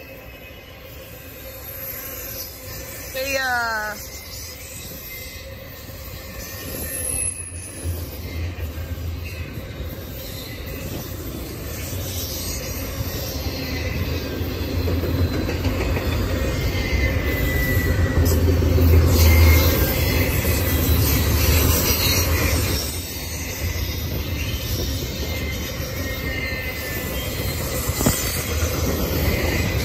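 A long freight train rumbles past close by, growing louder.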